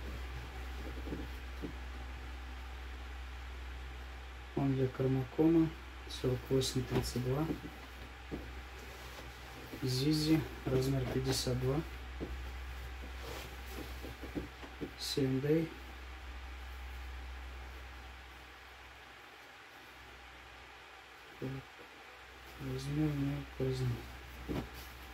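Denim fabric rustles and swishes as it is handled.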